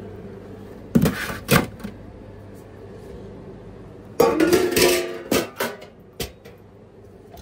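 Metal food pans clatter and clank.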